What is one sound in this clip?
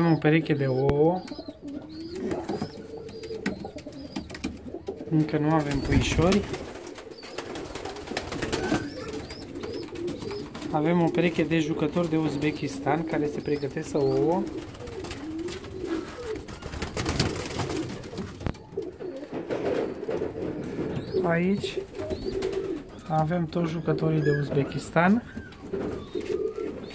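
Pigeons coo softly and repeatedly close by.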